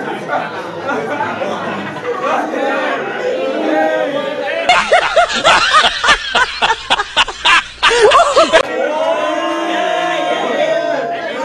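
A group of young men and women shout and cheer excitedly.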